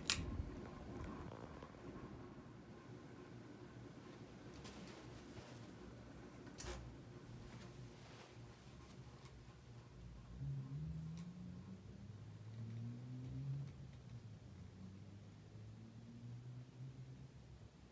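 A ceiling fan whirs steadily, then gradually slows down.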